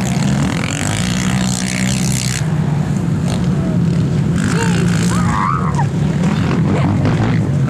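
Quad bike engines roar loudly nearby.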